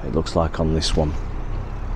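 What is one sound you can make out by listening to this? A heavy digger's engine rumbles steadily nearby.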